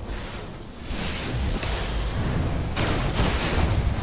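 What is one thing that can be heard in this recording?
A fiery explosion roars in a video game.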